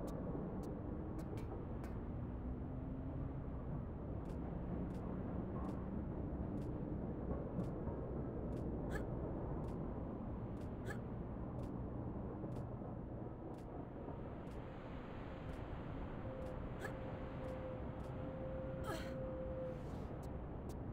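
Hands and feet clank softly on a metal lattice in a steady climbing rhythm.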